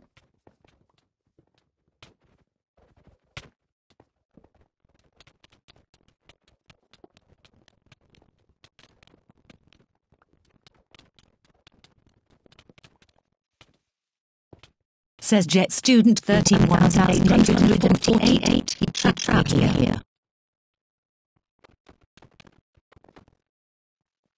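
Soft game clicks and taps sound as blocks are placed and broken.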